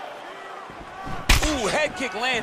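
Punches land on a body with heavy smacks.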